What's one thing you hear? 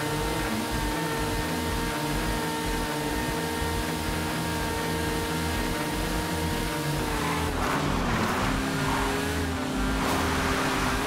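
A motorcycle engine hums steadily, its pitch dipping briefly and then settling.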